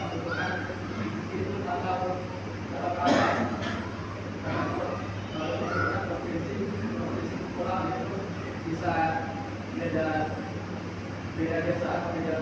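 A man speaks steadily through a microphone and loudspeakers in an echoing hall.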